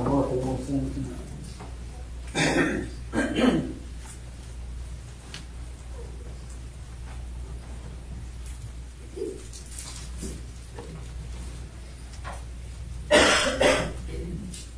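A man speaks aloud at a short distance, pausing between phrases.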